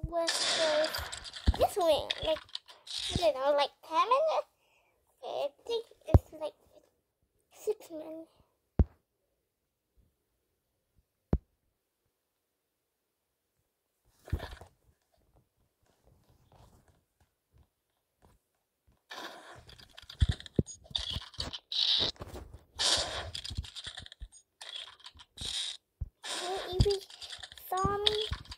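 A young girl talks with animation close to a microphone.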